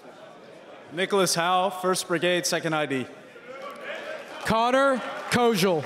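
A second young man announces loudly through a microphone.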